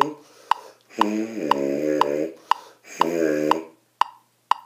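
A young man plays two short held notes on a small trumpet.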